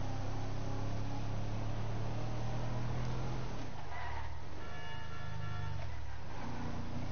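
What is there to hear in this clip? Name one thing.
A car engine hums steadily as the vehicle drives.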